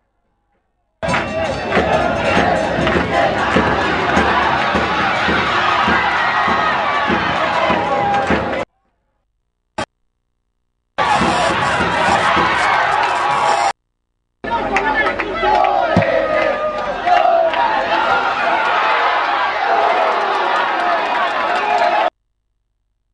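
A large crowd cheers and chants in a stadium.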